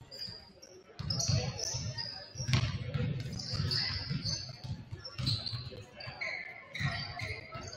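A basketball bounces with dull thumps on a wooden court.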